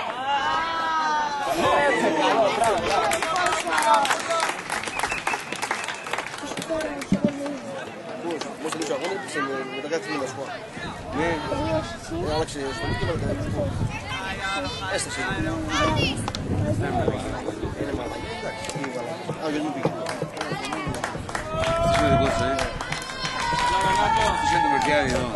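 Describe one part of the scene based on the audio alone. Young football players shout to each other outdoors at a distance.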